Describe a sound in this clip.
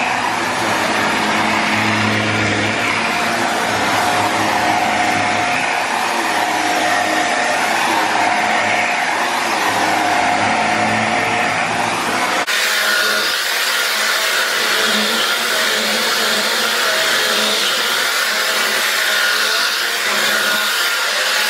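A vacuum cleaner motor hums steadily as the cleaner rolls back and forth over carpet.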